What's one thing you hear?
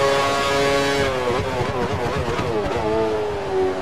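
A racing car engine rasps and pops through quick downshifts while braking.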